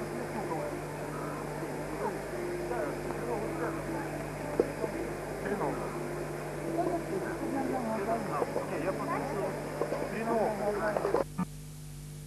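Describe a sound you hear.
Several young people chatter nearby outdoors.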